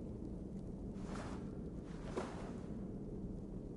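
A blade swishes through the air twice.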